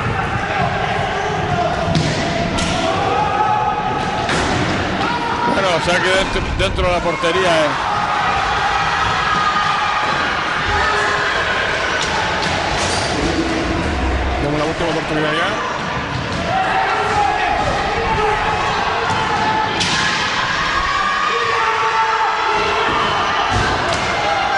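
Skate wheels roll and scrape across a hard floor in an echoing hall.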